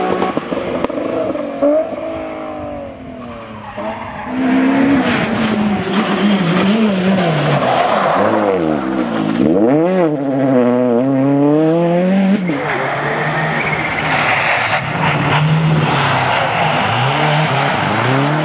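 A rally car engine revs hard and rises and falls in pitch as the car speeds along a road.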